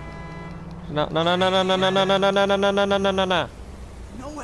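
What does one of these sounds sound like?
A car horn blares.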